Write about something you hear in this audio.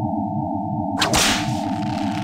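A whip cracks sharply.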